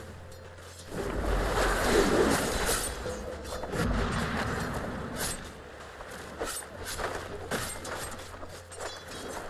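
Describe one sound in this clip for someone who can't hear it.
Magic spells crackle and whoosh in bursts.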